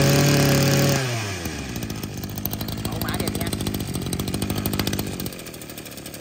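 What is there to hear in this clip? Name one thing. A small two-stroke engine buzzes at a steady idle.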